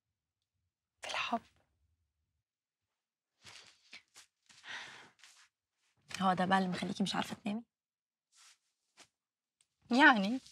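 A second young woman answers in a light, friendly voice.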